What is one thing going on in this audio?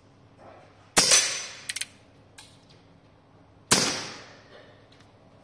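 A revolver fires two loud shots that ring out in an echoing hall.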